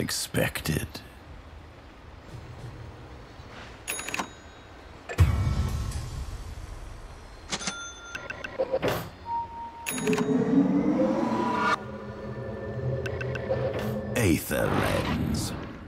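Game sound effects clash and chime.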